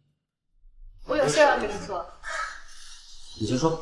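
A young woman speaks cheerfully.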